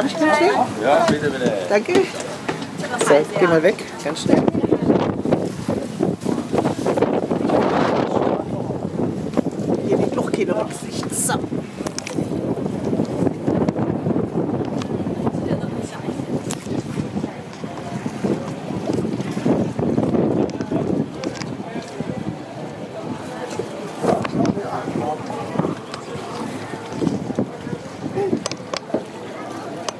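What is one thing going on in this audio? Water splashes against the side of a moving boat.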